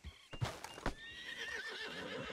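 A horse whinnies close by.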